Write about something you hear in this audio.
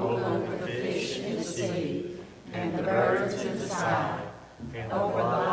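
A young man speaks calmly through a microphone in an echoing hall.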